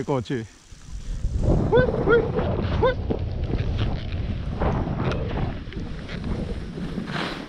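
Skis hiss and rumble through deep snow.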